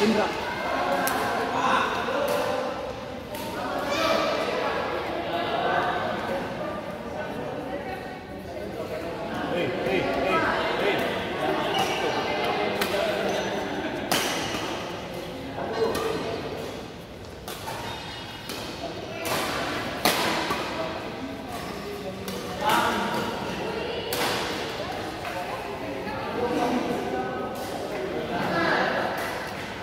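Shuttlecocks are smashed with sharp racket pops, again and again, in a large echoing hall.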